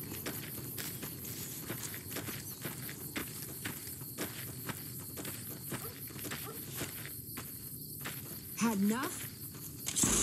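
Footsteps crunch steadily on dry gravel.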